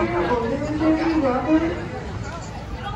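A group of young people sing together loudly.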